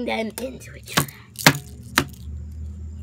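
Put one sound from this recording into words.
Plastic dolls knock lightly against a hard surface.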